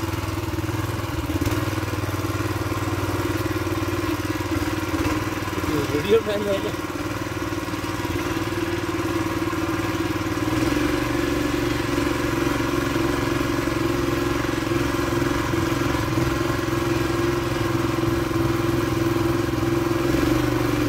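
A small tiller engine drones steadily nearby.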